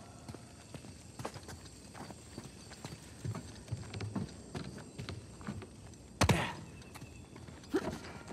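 Footsteps run across a stone floor.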